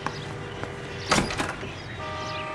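A door opens.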